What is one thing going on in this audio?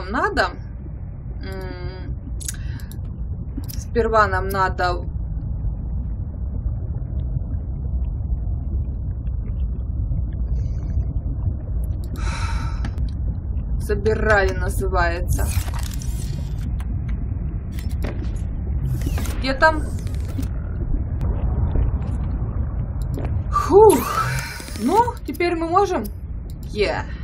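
A young woman talks casually, close to a microphone.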